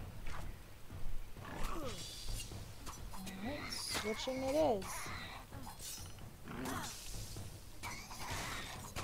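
Magic spells whoosh loudly.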